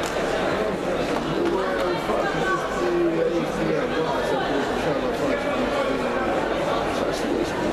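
A large crowd of men and women chatters in a big echoing hall.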